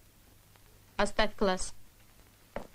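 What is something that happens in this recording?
A woman speaks sharply and sternly.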